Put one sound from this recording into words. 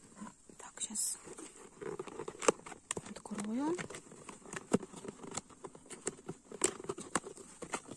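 A cardboard box rustles and taps as a hand handles it.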